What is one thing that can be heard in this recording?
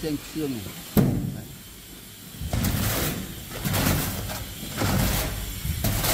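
Wet mortar slaps down onto a surface.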